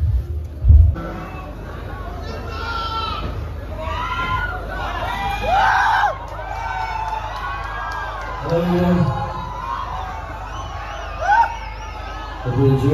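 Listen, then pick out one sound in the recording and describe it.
A man sings through loudspeakers.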